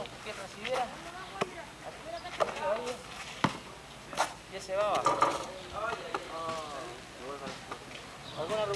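A man talks loudly outdoors, close by.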